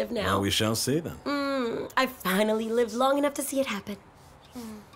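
A woman laughs playfully close by.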